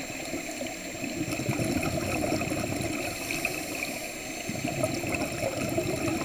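Air bubbles rush and gurgle upward in bursts.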